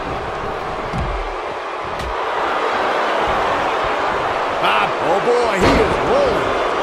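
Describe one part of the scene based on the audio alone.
Bodies slam onto a wrestling mat with heavy thuds.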